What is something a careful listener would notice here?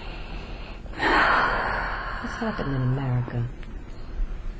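A young woman snores loudly close by.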